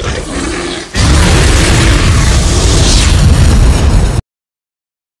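A huge fiery explosion roars.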